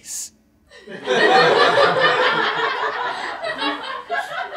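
Several men laugh together.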